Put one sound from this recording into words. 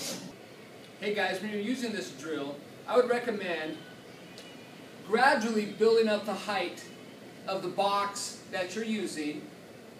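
A man speaks calmly to the listener.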